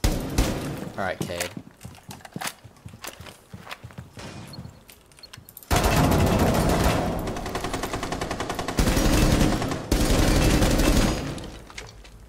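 Rapid gunfire rings out in short bursts.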